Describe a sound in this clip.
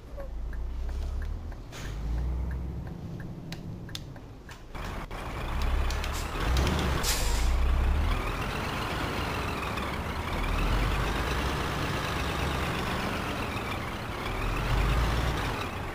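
A truck engine rumbles low and steadily, rising and falling as it drives.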